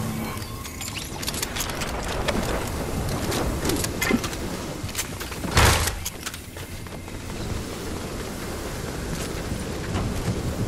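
Footsteps patter quickly on hard stone and wooden stairs.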